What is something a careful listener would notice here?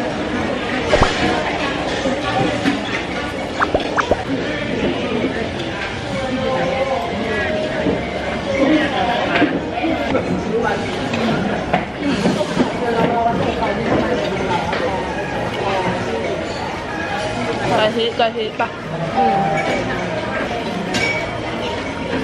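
A young woman chews and smacks her lips loudly.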